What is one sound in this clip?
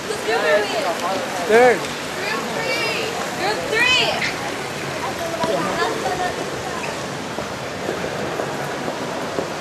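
A crowd murmurs in a large echoing space.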